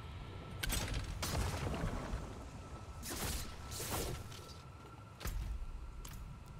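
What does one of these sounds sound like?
A spell bursts with loud crackling whooshes.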